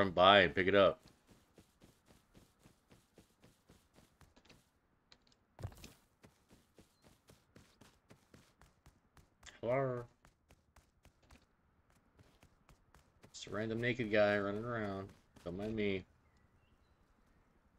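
Footsteps run quickly over grass and ground.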